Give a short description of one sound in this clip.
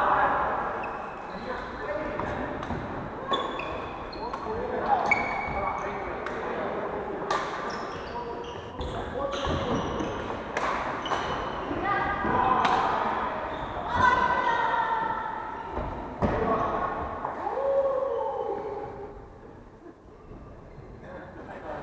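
Young men and women call out and chatter in a large echoing hall.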